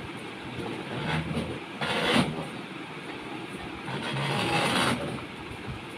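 Fabric rustles and flaps as garments are handled.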